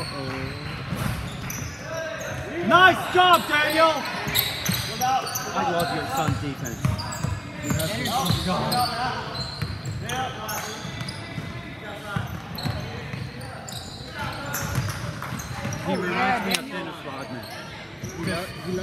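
Players and onlookers shout and call out across the gym.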